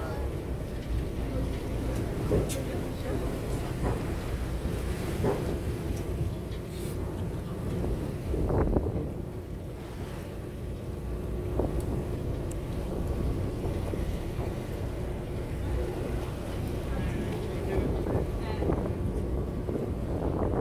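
Waves slosh and splash.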